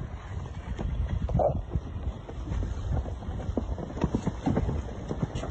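Water splashes under a small sailing boat's hull as it skims past.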